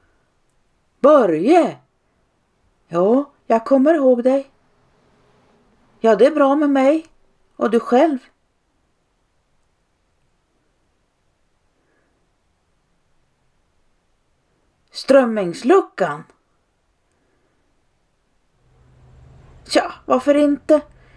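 A middle-aged woman speaks loudly and with animation close by, in short bursts.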